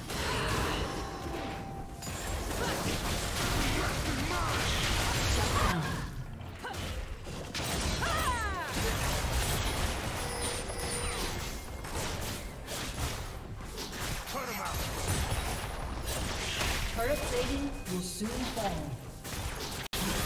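Spells and attacks crackle and burst in a fantasy battle game.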